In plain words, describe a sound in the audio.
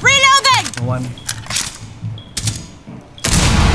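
A rifle is reloaded with quick metallic clicks.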